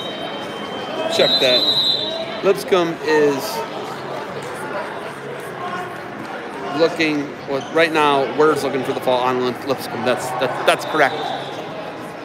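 Adult spectators shout encouragement in a large echoing hall.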